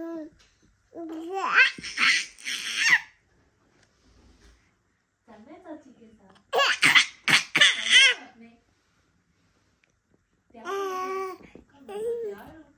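A baby babbles and squeals excitedly close by.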